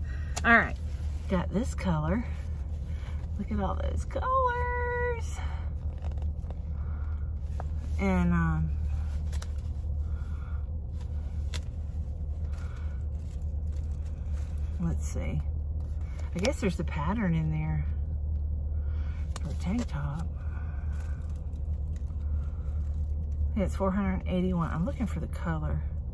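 A middle-aged woman talks calmly and close by, in short bursts with pauses.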